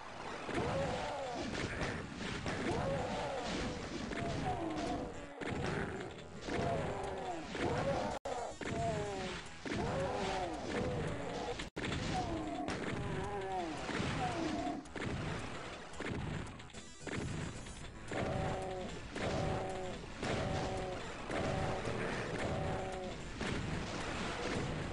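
A shotgun fires again and again.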